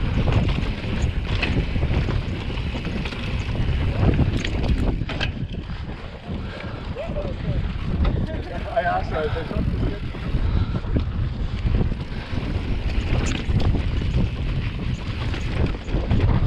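Bicycle tyres rumble and crunch over rock and gravel.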